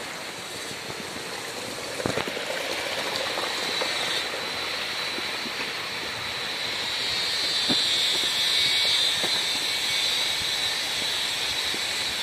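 Footsteps tread on a stony forest path.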